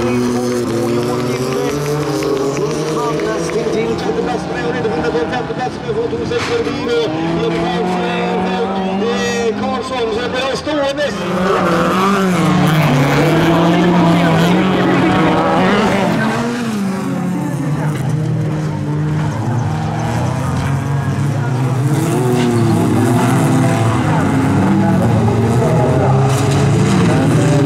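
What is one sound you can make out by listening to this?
Racing car engines roar and rev up and down.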